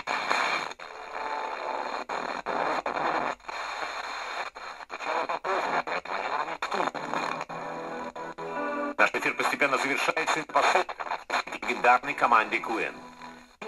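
Static hisses and breaks up between stations on a radio.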